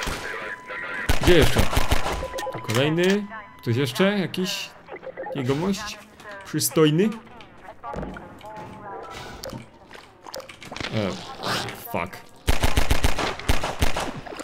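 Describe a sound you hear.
Pistol shots fire in quick bursts.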